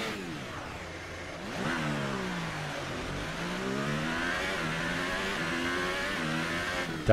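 A racing car engine screams at high revs, its pitch rising and dropping sharply with each gear change.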